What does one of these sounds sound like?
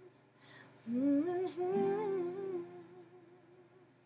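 A young woman sings softly nearby.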